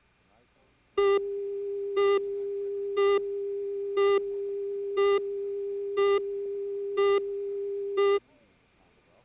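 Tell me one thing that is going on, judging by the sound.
A short beep sounds once every second, counting down.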